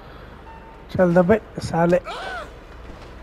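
A van door opens and slams shut.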